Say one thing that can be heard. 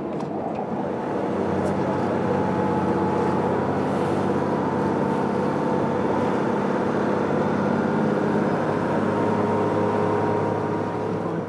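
Water rushes and splashes along a speeding motorboat's hull.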